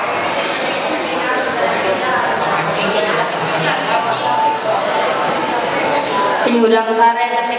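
A young man talks with animation through a loudspeaker.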